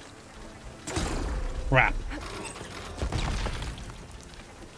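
Game explosions and energy blasts boom and crackle.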